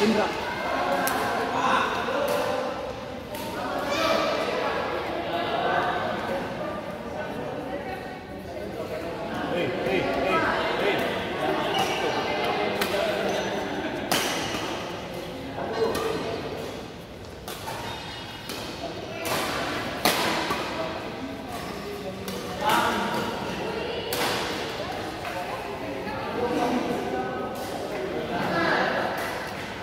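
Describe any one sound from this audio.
Men chatter and call out in the background.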